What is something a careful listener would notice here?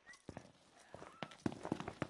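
Footsteps scuff on a paved road.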